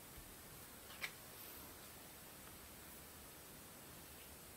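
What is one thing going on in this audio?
A playing card is laid down onto a table with a soft tap.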